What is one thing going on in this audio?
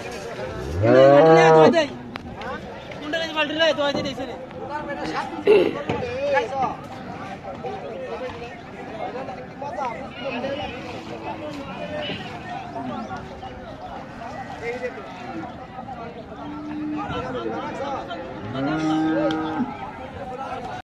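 A calf moos loudly nearby.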